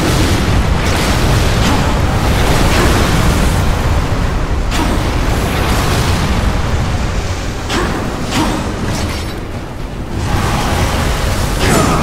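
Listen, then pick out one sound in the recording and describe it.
Sharp impacts clang as blades strike.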